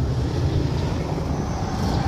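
A heat gun blows with a steady whir.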